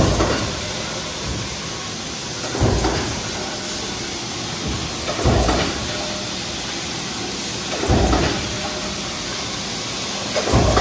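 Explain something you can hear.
Machinery hums and clatters steadily.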